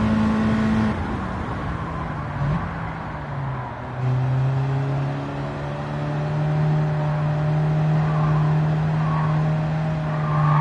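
A car engine drops in pitch as the car slows, then climbs again.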